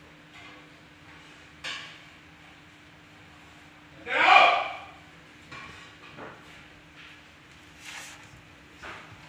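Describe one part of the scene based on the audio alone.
Footsteps shuffle on a stone floor.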